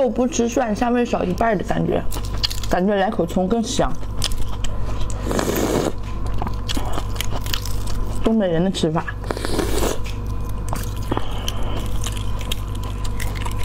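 Eggshell cracks and crinkles as a young woman peels an egg.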